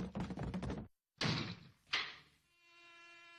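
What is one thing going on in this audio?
A door handle turns with a click.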